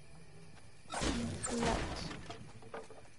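A pickaxe strikes a wooden wall with sharp thuds.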